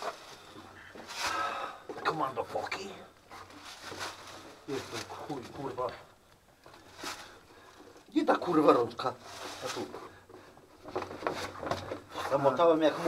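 A man talks calmly and close by, in an echoing rocky space.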